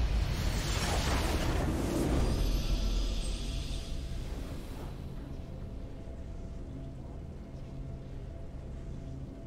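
A triumphant fanfare of music plays.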